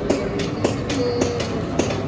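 Glass bangles clink on a woman's raised wrist.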